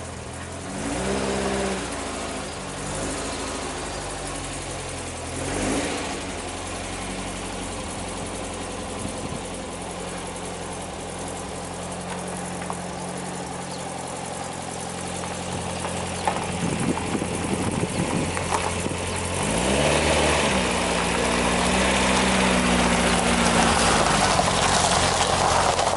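A van engine idles and revs.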